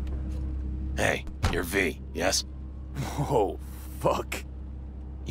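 A man speaks close by in a gruff voice.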